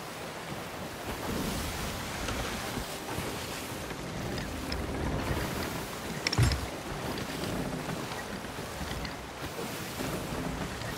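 Waves splash and rush against a boat's hull.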